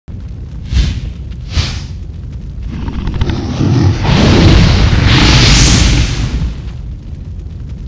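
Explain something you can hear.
Flames whoosh and roar.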